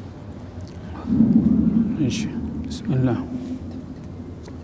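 An elderly man speaks slowly and calmly into a microphone.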